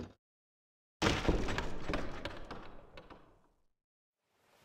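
A heavy door slams shut with a booming rumble.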